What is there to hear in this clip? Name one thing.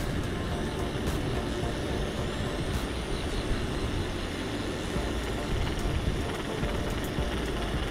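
Tyres roll steadily over pavement.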